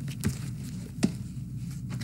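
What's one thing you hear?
A cardboard box thumps down onto a table.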